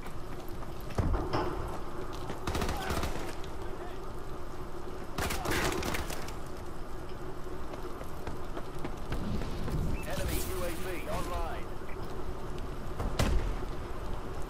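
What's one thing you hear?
Gunfire crackles in short, loud bursts.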